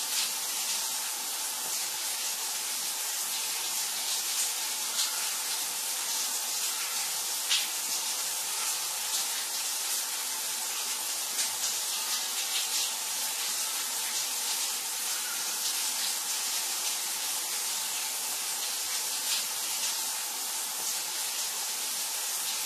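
Water sprays steadily from a shower head, hissing and splashing.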